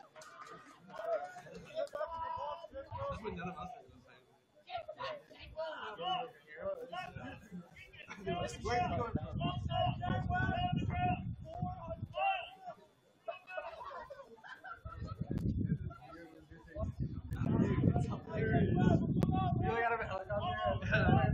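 Young players shout and call to each other across an open field outdoors.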